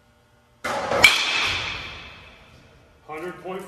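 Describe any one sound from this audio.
A bat cracks against a baseball with a sharp ringing ping.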